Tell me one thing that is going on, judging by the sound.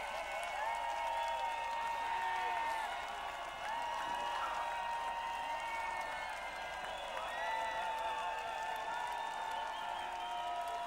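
Live music plays loudly over large outdoor loudspeakers.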